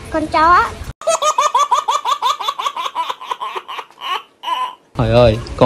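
A baby laughs in rapid bursts, up close.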